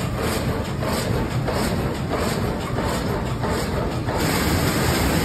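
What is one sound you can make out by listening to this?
A sash saw cuts through a log with a fast, rhythmic rasp.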